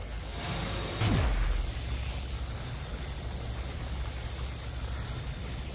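Electricity crackles and hums steadily.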